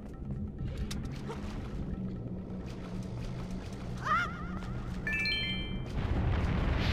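Low, steady game music hums.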